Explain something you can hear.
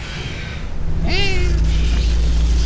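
A creature lets out a sharp, shrill shriek.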